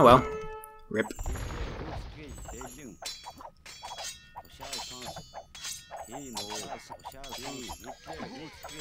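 Swords clash and metal clanks in a fight.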